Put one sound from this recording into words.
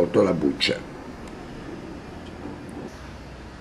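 Soft peeled tomatoes squish and bump as a hand lifts them from a bowl.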